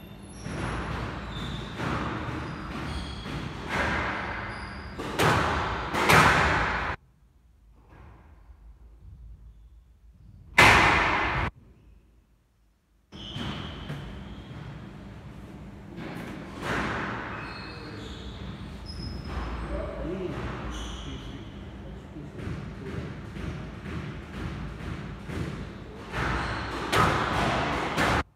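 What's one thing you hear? A squash ball smacks sharply against rackets and walls, echoing around a hard-walled court.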